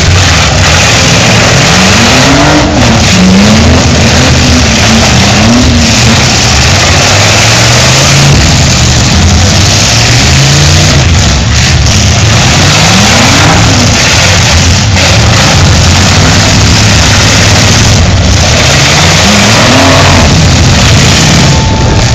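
Car engines roar and rev loudly, rising and falling.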